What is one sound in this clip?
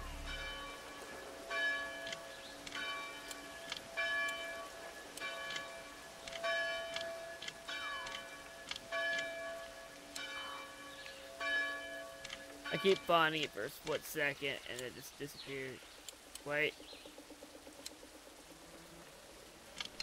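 A lock pick scrapes and clicks inside a metal lock.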